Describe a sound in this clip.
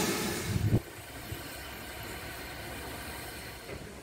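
Steam hisses softly from a locomotive.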